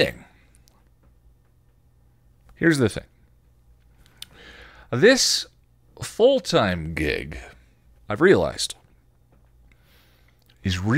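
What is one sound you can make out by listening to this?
A man speaks close into a microphone in short, animated bursts with pauses.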